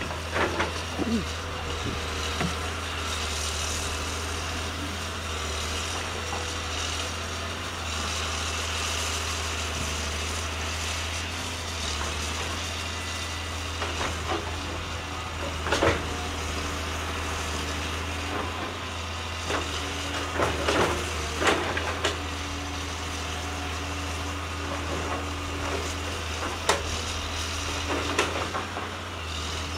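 A diesel tracked excavator's engine runs under load.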